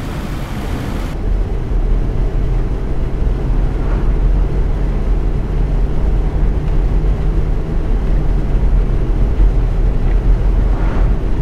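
A bus engine hums steadily with a low rumble.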